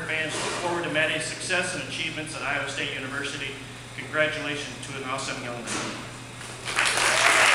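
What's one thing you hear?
A man reads out calmly through a microphone.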